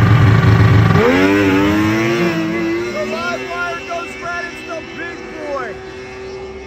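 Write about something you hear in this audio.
A snowmobile engine revs up and roars away, fading into the distance.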